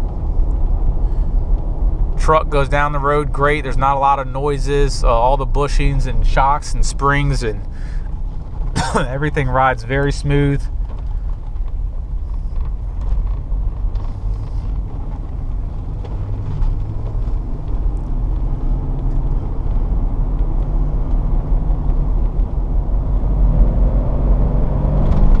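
Tyres roll on a paved road with a low rumble.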